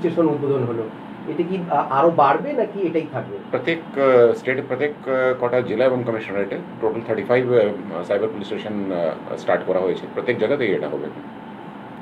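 A man speaks calmly into close microphones.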